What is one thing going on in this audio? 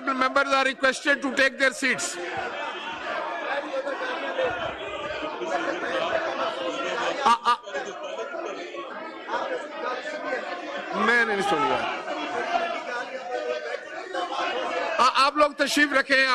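A middle-aged man speaks calmly through a microphone in a large echoing hall.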